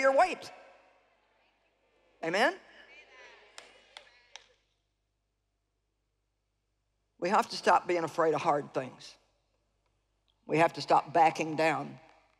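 A middle-aged woman speaks emphatically through a microphone, in short bursts with pauses.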